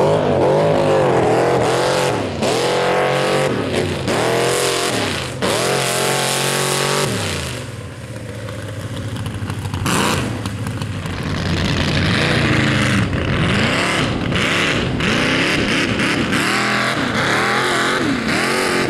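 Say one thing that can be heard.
A truck engine roars and revs up and down loudly, outdoors.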